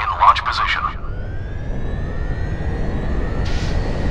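A jet engine whines and rises in pitch as a plane takes off.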